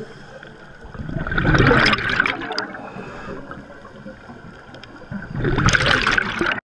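Scuba bubbles gurgle and rumble loudly from a diver's regulator underwater.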